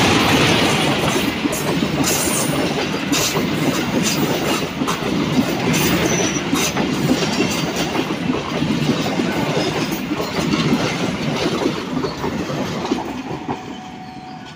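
Passenger coaches rumble and clatter over rail joints.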